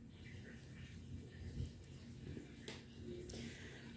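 A paper candy cup rustles softly as a sweet is set down on a table.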